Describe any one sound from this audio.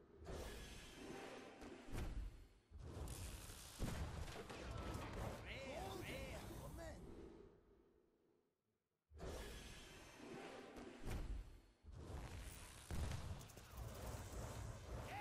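Magical game effects whoosh and shimmer as card packs burst open.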